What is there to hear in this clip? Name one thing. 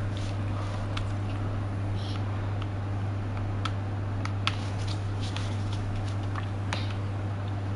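A handheld scanner gives soft, scattered clicks.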